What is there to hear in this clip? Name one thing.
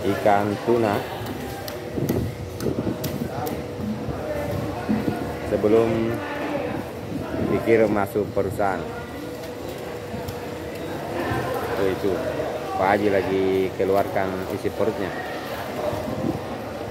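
A knife slices wetly through fish flesh.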